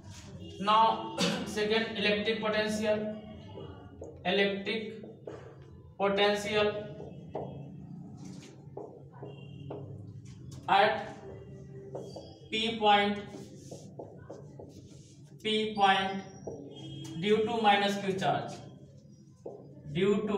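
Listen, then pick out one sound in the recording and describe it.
A man lectures calmly, close by.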